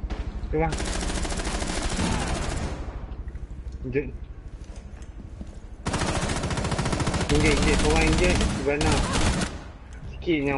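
Rapid automatic gunfire rattles in bursts at close range.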